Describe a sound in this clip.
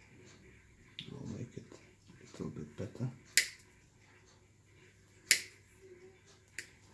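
Small pliers click sharply a few times.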